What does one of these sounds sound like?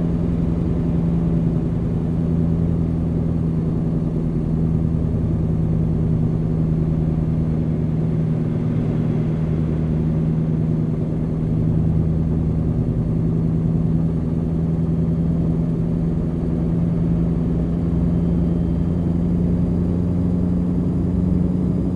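A truck engine hums steadily at cruising speed.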